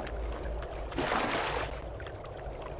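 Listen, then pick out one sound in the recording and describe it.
Water splashes loudly as someone plunges in.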